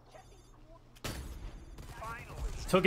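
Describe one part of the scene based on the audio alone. A rifle shot cracks loudly and echoes.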